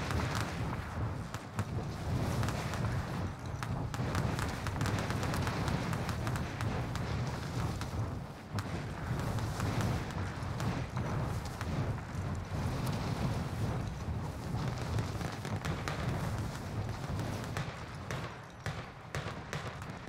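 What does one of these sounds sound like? Wind rushes loudly and steadily during a freefall.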